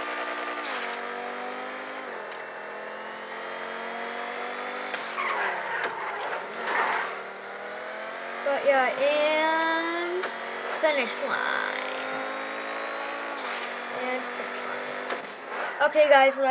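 A race car engine roars at high revs, shifting gears.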